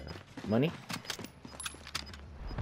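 A rifle fires a quick burst of shots.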